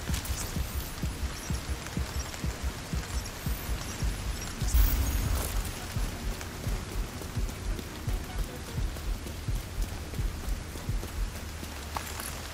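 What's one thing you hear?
Footsteps thud quickly and steadily on the ground.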